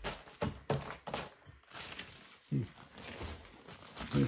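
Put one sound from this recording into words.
Newspaper rustles and crinkles.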